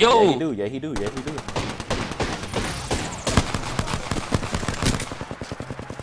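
Gunshots fire in rapid bursts close by.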